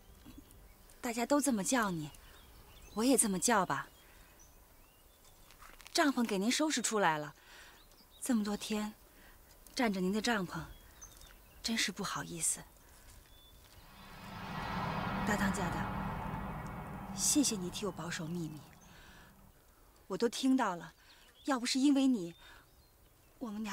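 A young woman speaks softly and earnestly close by.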